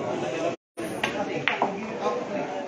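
A cue stick strikes a billiard ball with a sharp click.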